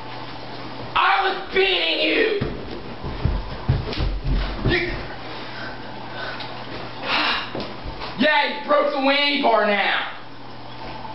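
Young men shout and laugh loudly close by.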